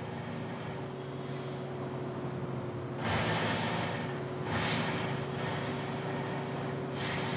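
Tyres rush on a road.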